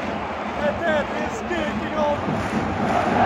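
A young man speaks excitedly, close to the microphone.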